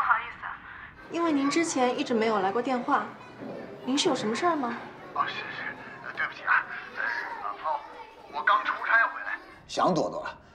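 A young woman speaks on a phone.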